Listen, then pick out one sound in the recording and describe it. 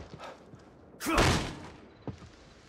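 A door bangs open.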